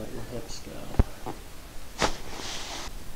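A neck joint pops sharply.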